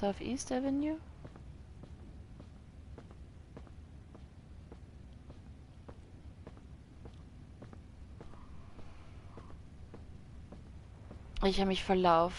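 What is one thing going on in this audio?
Footsteps tap at an even pace.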